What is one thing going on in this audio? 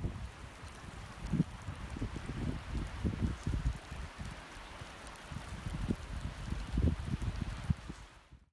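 Wind blows in gusts across the microphone outdoors.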